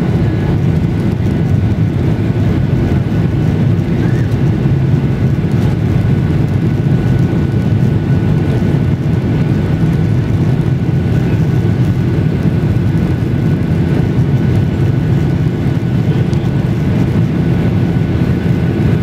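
Tyres rumble on the runway.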